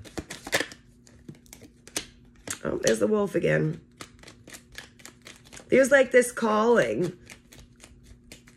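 Cards shuffle with quick, soft flicking.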